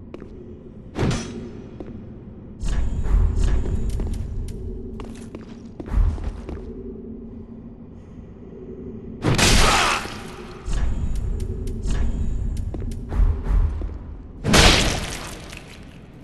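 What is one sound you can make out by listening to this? A whip cracks and lashes.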